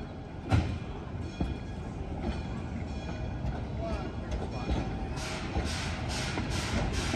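Train cars roll past, wheels clanking and rumbling on the rails.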